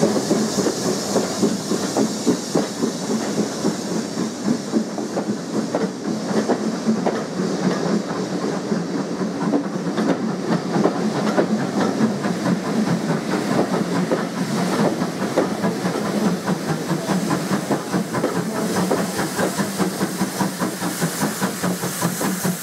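Train carriages rumble and clatter steadily along the rails.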